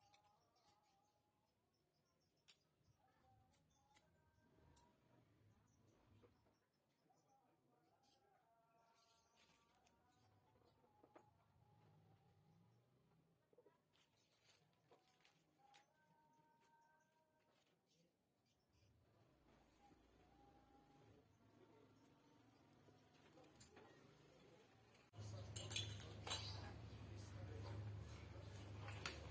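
Plastic wire connectors click and rustle as they are handled.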